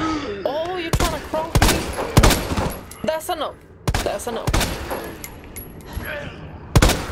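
Gunshots ring out one after another.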